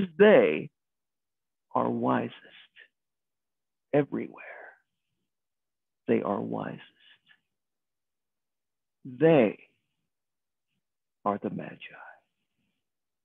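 A middle-aged man speaks calmly in short phrases, heard close through a microphone on an online call.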